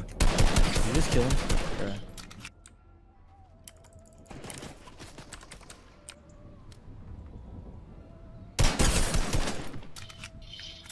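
Rapid gunfire rattles loudly in a video game.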